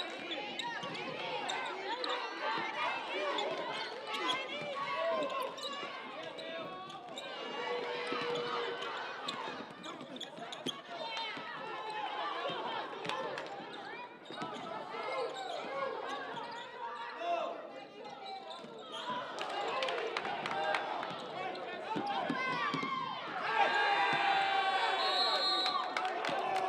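A crowd cheers and chatters in an echoing gym.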